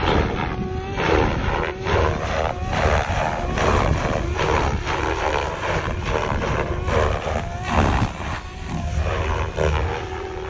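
A model helicopter's rotor whines and roars, its pitch rising and falling as it swoops.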